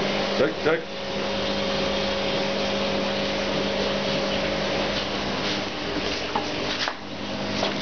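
An electric fan hums steadily close by.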